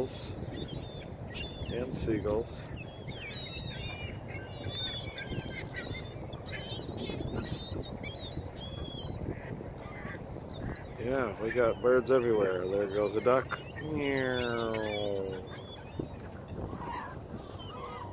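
Ring-billed gulls call.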